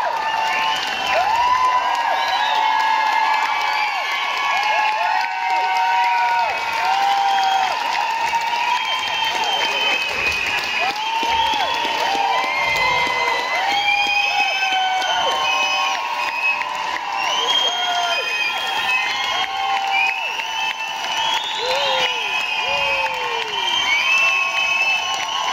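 A large crowd screams and cheers with excitement.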